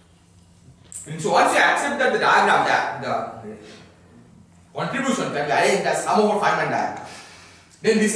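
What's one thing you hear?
A man speaks with animation, lecturing in a large echoing room.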